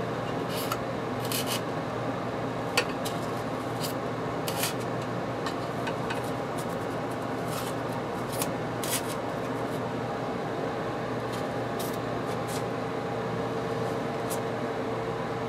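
Small plastic model parts click and tap together as they are handled.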